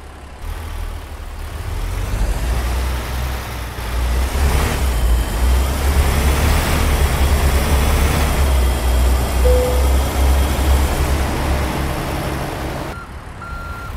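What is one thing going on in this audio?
A diesel semi-truck engine rumbles as the truck pulls away under load.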